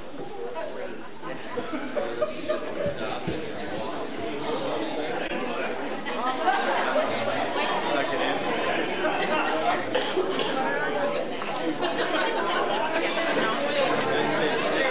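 A band plays music in a large hall.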